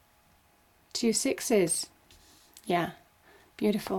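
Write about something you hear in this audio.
A card is laid down on a table with a soft slap.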